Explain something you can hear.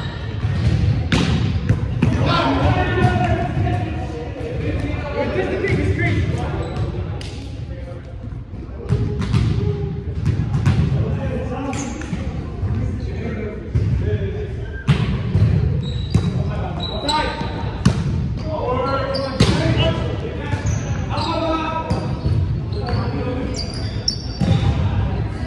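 Young men shout and call out to each other during play.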